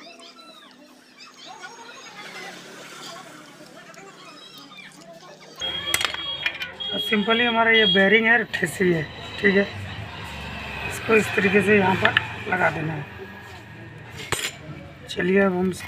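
Metal parts clink and tap against an engine.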